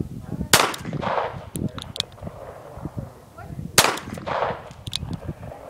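A .38 Special revolver fires two shots outdoors, each echoing off the tree line.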